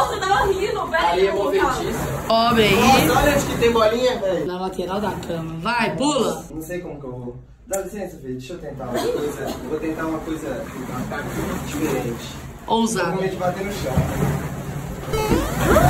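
A young man talks and laughs with animation nearby.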